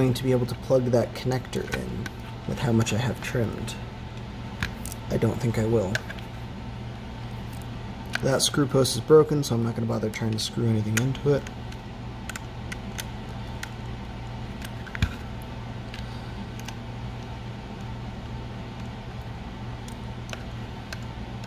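A small screwdriver scrapes and clicks against tiny screws in a plastic case.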